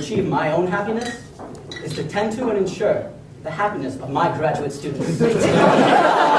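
A man speaks into a microphone, amplified in a large room.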